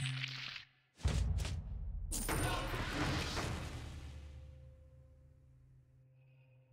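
A sudden whoosh of game sound sweeps through and slowly fades.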